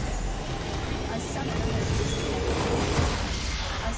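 A tower crumbles with a heavy blast.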